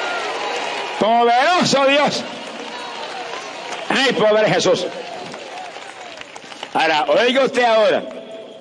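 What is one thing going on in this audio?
A choir sings short phrases through loudspeakers.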